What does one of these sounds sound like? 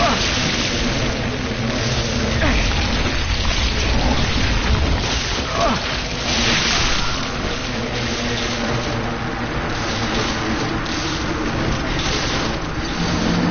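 Metal weapons clash and scrape in a fight.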